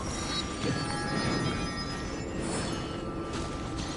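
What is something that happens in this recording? A bright sparkling chime rings out.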